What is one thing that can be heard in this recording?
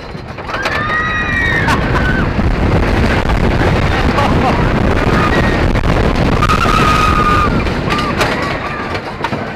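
Young women scream with excitement.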